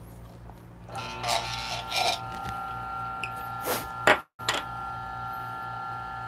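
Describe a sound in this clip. An electric coffee grinder whirs steadily.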